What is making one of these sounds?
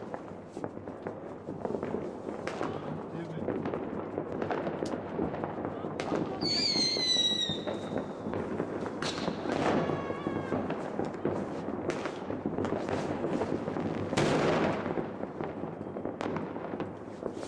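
Firework fountains crackle and hiss steadily outdoors.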